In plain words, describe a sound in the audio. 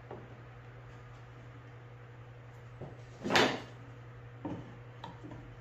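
Wooden boards knock and slide against each other.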